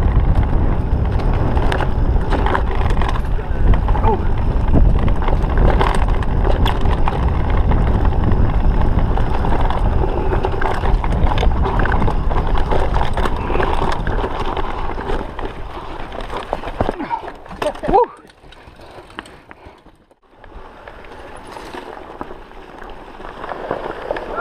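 Bicycle tyres rumble and rattle over a bumpy dirt trail.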